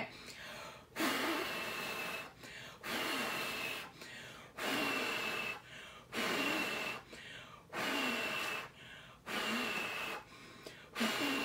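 A young woman blows hard in long, repeated breaths.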